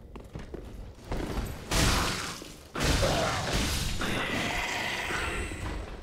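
A sword swings and strikes in a fight.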